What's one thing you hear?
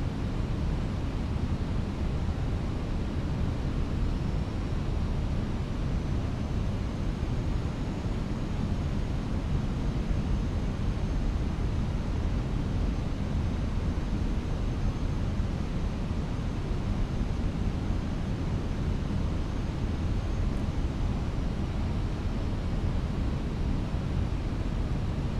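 A steady low engine roar and rushing air fill an aircraft cockpit.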